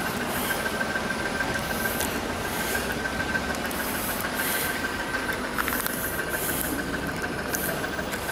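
Cars drive past on a slushy road nearby.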